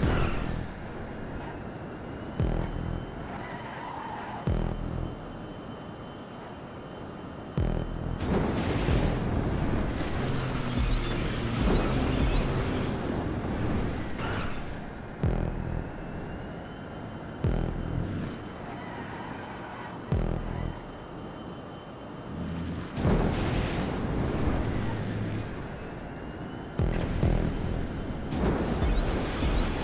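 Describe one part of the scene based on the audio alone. A sports car engine roars at high revs, rising and falling as gears change.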